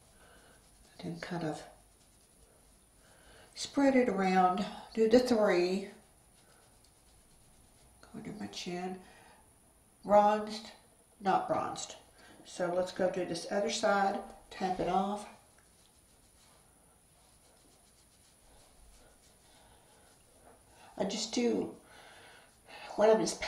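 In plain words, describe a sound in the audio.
A middle-aged woman talks calmly and close to a microphone, in short bursts with pauses.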